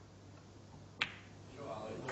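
Snooker balls knock together softly.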